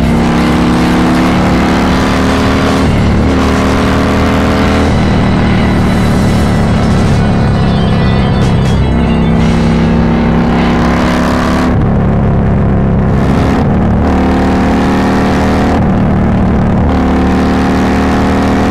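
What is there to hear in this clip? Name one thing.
A motorcycle engine hums steadily while riding at speed.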